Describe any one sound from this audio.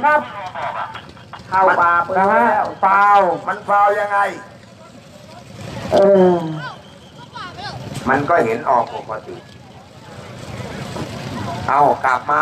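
A man calls out loudly with animation over a loudspeaker outdoors.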